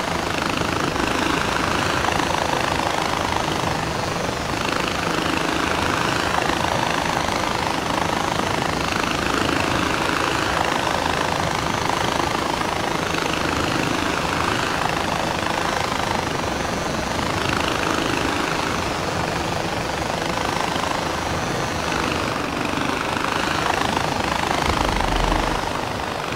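A pulley whirs and hums steadily along a taut cable.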